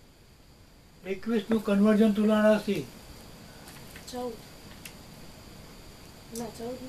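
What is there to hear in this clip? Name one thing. An elderly man speaks nearby, reading out in a sing-song voice.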